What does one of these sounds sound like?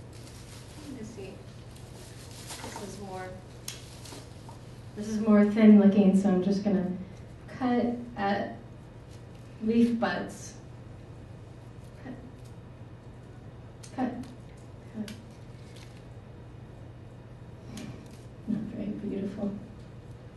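A young woman speaks in bursts into a microphone, heard through a loudspeaker in a room.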